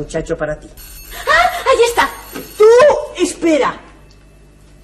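A young woman exclaims loudly and with animation.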